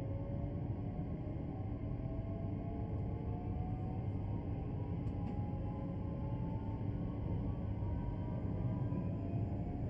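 An electric train motor whines, slowly rising in pitch as it speeds up.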